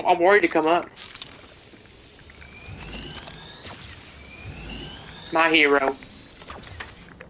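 A gas canister hisses loudly and steadily.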